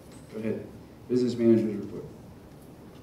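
A man speaks briefly through a microphone in a large echoing hall.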